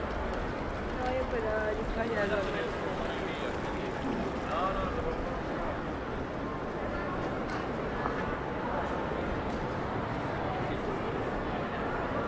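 A crowd of pedestrians murmurs outdoors.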